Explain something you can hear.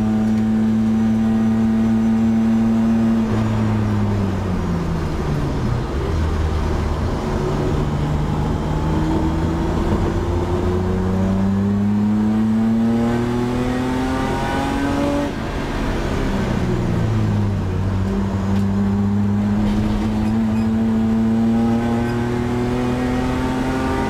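A car engine roars loudly from inside the cabin, its pitch dropping and rising as the driver shifts gears.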